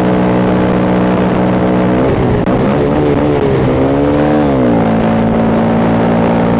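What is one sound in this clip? A motorcycle engine drones steadily up close, its pitch dropping and rising as it shifts gears.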